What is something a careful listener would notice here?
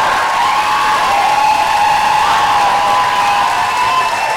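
A large crowd cheers and screams in an echoing hall.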